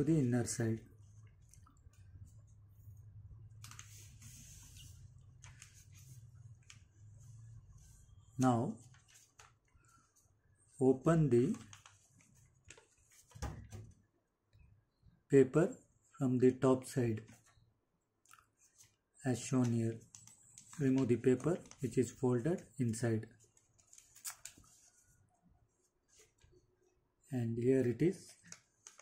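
Paper rustles and crinkles as it is folded and creased by hand.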